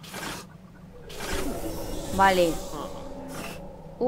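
Metal sliding doors whoosh open.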